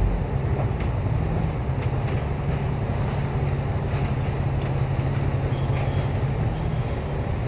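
A tram's motor hums steadily with a low drone as it rolls along.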